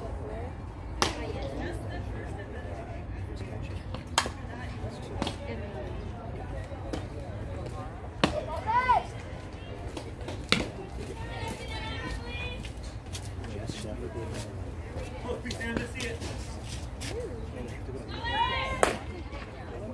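A softball pops sharply into a catcher's mitt.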